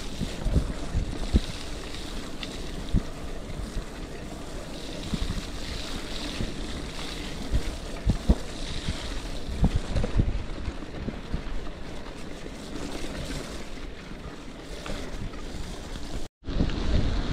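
Bicycle tyres crunch and rumble over a bumpy dirt trail.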